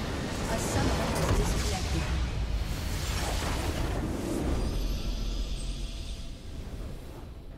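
A loud explosion booms and rumbles, then fades.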